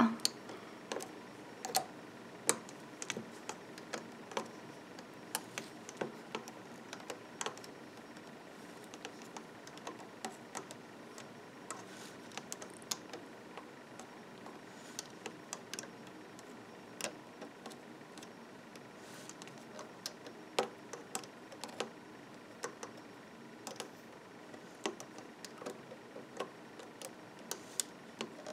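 Small plastic clicks and taps sound close by as rubber bands are hooked and pulled on a loom.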